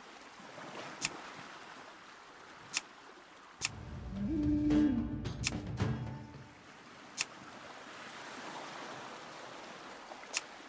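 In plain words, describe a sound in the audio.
Game menu buttons click sharply, a few times.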